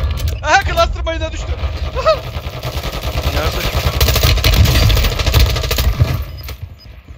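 Rapid gunfire crackles and booms up close.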